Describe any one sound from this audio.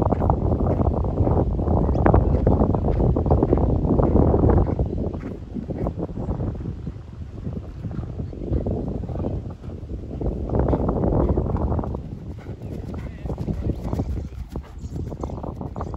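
A horse's hooves thud on grass as it canters.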